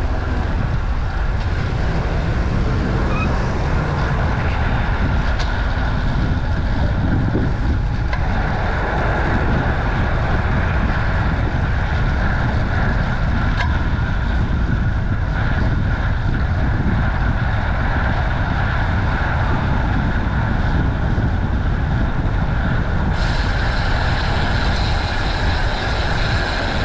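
Bicycle tyres hum on the road.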